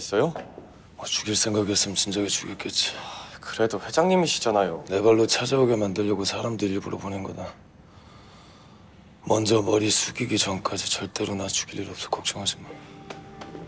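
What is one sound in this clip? A man speaks calmly and firmly, close by.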